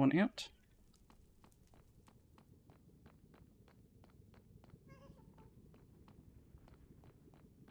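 Footsteps tap steadily on hard stone.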